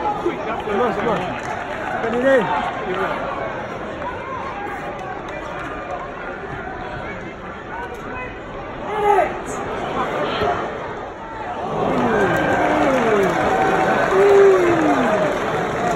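A crowd of spectators chatters and shouts across an open-air stadium.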